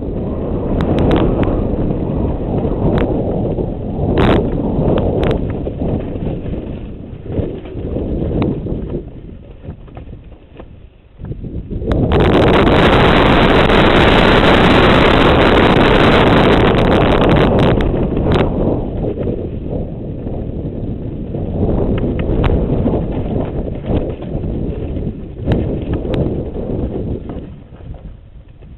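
Wind rushes and buffets loudly past a bike rider speeding downhill.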